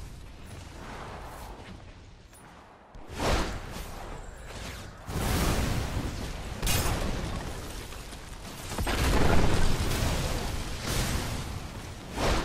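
Fire roars and crackles in loud bursts.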